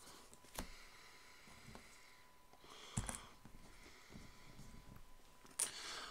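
Game tokens click softly against one another on a table.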